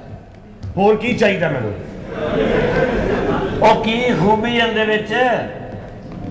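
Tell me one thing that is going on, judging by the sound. A man talks loudly and with animation, close by.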